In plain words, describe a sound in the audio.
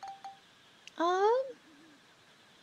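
A quick rising electronic jingle plays.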